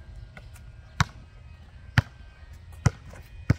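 A basketball bounces hard on asphalt outdoors.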